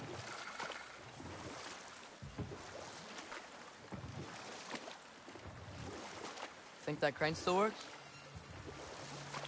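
Oars splash and dip in water as a boat is rowed.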